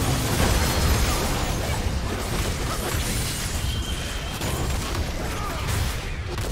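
Game spell blasts and weapon hits crackle and boom in a busy battle.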